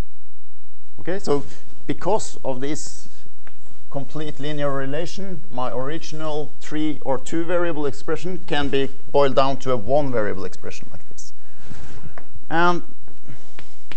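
A man lectures in a large room, speaking steadily and with some echo.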